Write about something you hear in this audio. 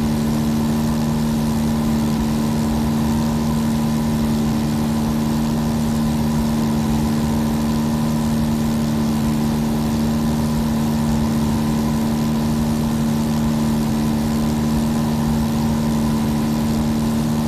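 A small plane's propeller engine drones steadily.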